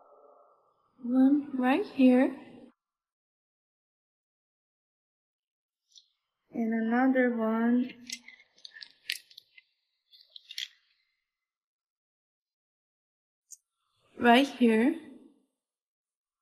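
A young woman speaks in short bursts, close by.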